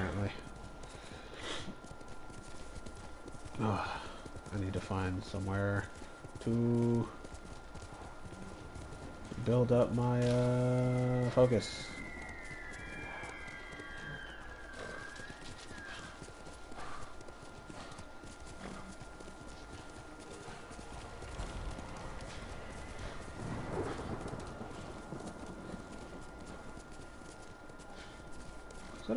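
A horse gallops, hooves thudding on soft ground.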